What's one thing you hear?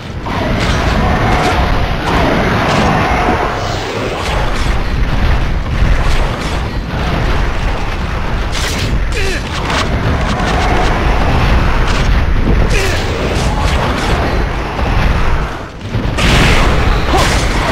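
A blade swings and strikes with sharp clangs.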